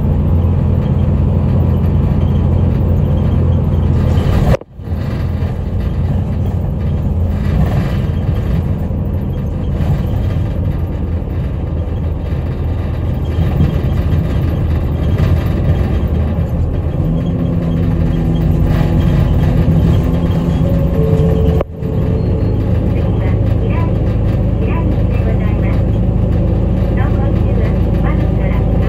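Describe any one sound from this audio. A vehicle's engine hums steadily from inside.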